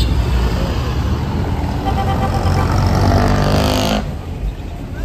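A jeepney's diesel engine roars loudly as it passes close by.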